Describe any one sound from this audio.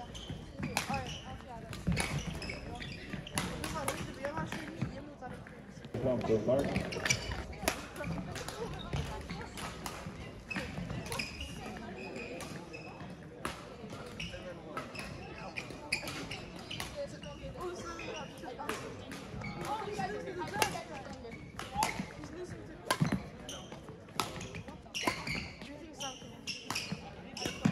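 Shuttlecocks are hit with sharp pops of rackets, over and over.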